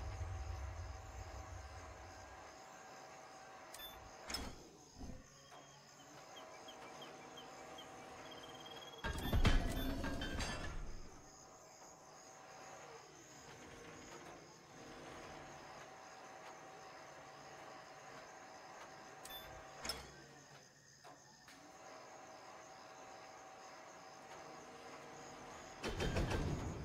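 A crane's winch hums steadily as a load hangs on its cable.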